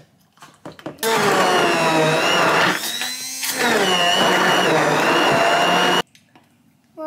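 An immersion blender whirs, blending a smoothie.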